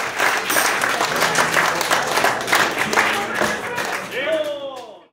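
An acoustic guitar is strummed briskly.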